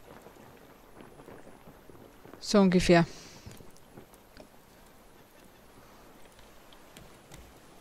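Gentle waves lap softly against a wooden raft.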